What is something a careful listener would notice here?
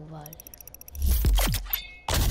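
An energy weapon fires with loud booming blasts.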